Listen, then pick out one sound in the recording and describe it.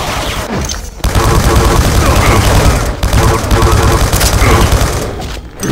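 An electric gun buzzes and crackles in rapid bursts.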